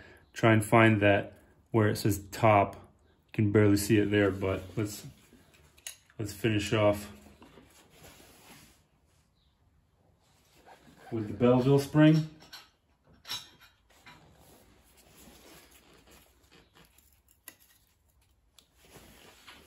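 A metal clip clinks against metal engine parts.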